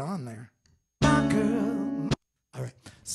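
An acoustic guitar strums a chord.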